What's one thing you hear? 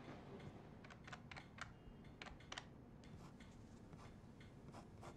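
Keys click on a computer keyboard.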